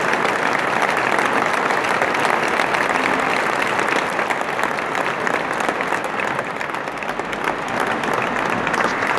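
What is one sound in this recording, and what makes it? A large crowd claps and cheers loudly in a big echoing hall.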